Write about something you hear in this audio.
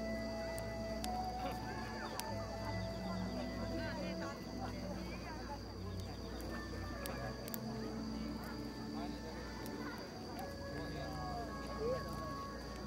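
A small band plays music outdoors.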